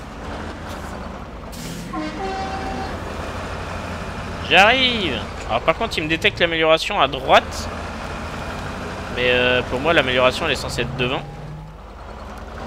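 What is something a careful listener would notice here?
An off-road truck engine rumbles steadily as it climbs a rough slope.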